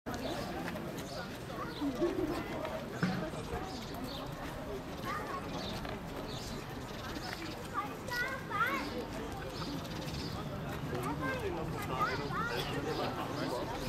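A crowd of young people chatters outdoors nearby.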